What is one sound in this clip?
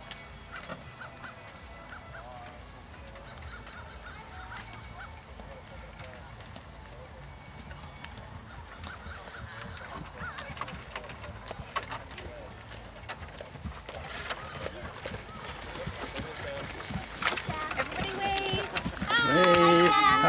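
Horse hooves clop on grass, drawing closer.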